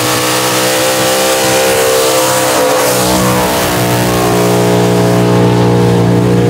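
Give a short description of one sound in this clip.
Car engines roar loudly at high revs.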